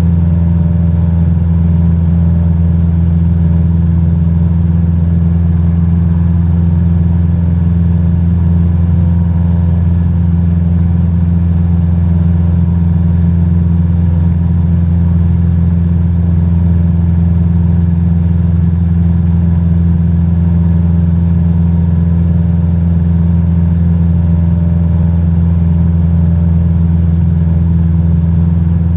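A small propeller plane's engine drones steadily and loudly.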